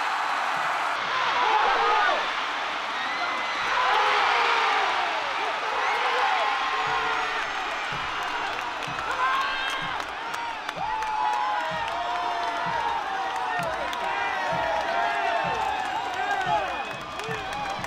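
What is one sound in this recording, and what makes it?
Young men shout and cheer excitedly nearby.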